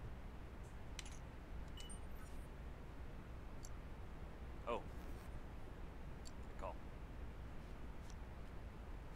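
Poker chips clink on a table.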